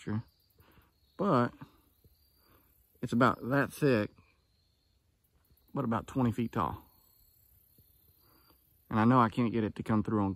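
A man speaks calmly close by, in short bursts with pauses.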